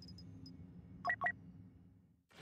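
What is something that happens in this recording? A game menu beeps as an option is selected.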